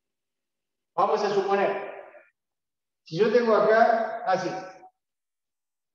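A man speaks calmly and clearly, close to the microphone.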